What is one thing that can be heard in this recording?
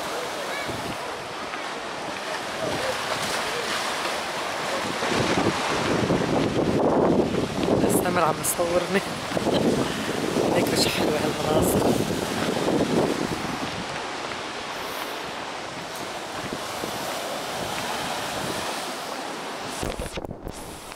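Ocean waves crash and wash over rocks nearby.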